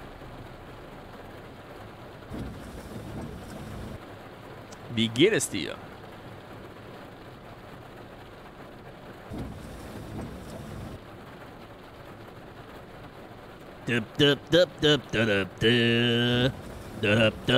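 Heavy rain patters steadily on a bus windscreen.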